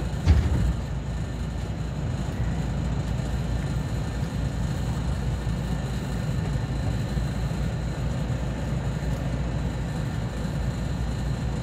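Strong wind rumbles and gusts outdoors.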